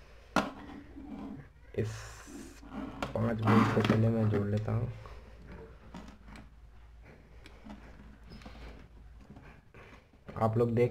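Hands handle small plastic parts and wires with soft clicks and rustles.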